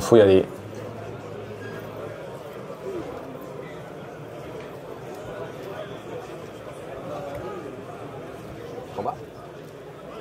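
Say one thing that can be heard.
Playing cards shuffle and riffle in a player's hands.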